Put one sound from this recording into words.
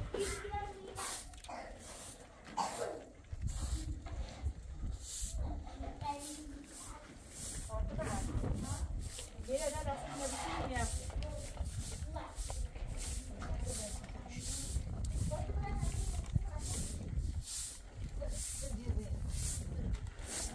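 A straw broom sweeps a concrete floor in quick, repeated strokes.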